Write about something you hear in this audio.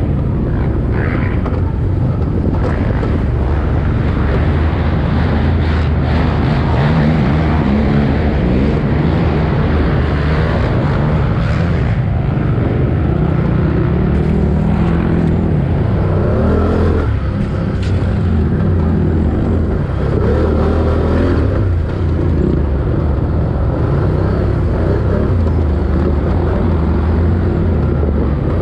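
Wind rushes and buffets against the microphone.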